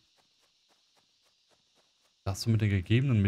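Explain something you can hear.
Light footsteps patter quickly over grass.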